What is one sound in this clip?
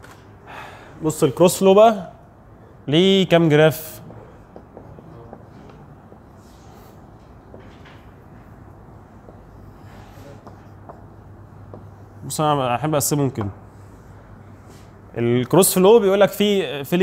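A young man speaks out clearly, pausing between phrases.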